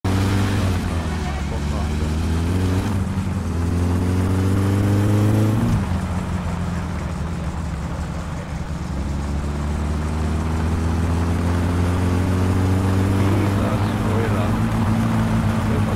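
A car engine roars and revs up and down through the gears.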